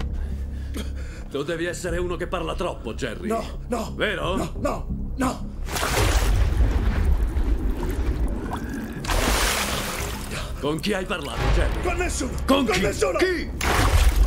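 A man speaks with menace, close by.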